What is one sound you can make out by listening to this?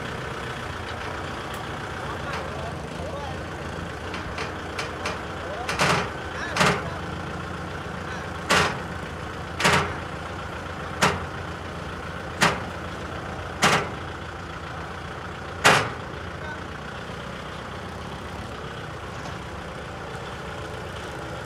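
A tractor engine idles and rumbles steadily.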